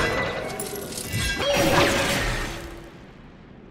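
A heavy blow strikes with a loud crash.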